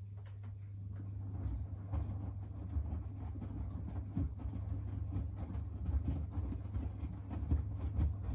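Wet laundry tumbles and thumps inside a washing machine drum, growing faster and louder.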